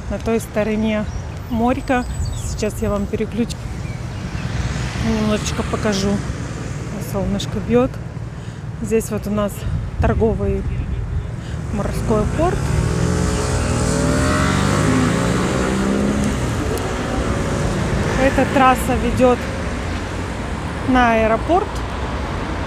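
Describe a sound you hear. A middle-aged woman talks calmly close to the microphone.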